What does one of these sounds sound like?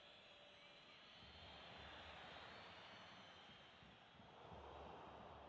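A stadium crowd roars and chants in a football video game.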